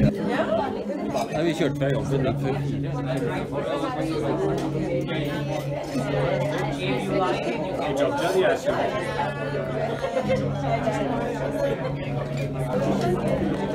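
A crowd of men and women chat all around, close by.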